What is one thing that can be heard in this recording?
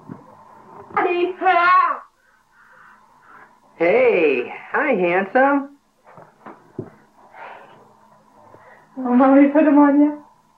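A baby squeals and babbles.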